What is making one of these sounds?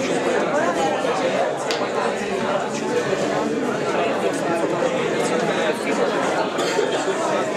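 A man speaks to an audience at a distance.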